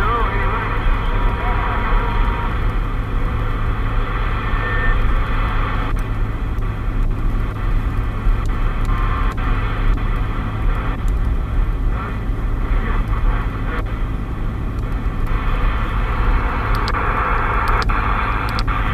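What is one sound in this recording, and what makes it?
Radio static hisses steadily from a loudspeaker.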